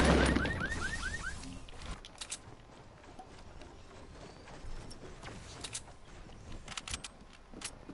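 Wooden walls thud into place as they are built.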